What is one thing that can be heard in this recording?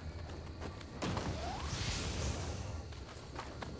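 A bright magical shimmer swells up and fades away.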